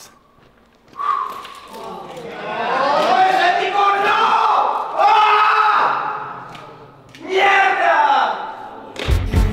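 A young man shouts loudly with strain, close by.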